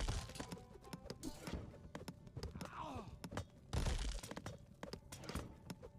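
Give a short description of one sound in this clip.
Swords clash and clang repeatedly in a battle.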